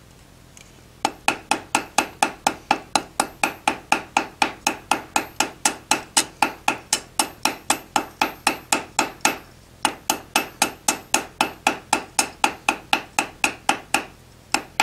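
A hammer strikes metal on an anvil in quick, ringing blows.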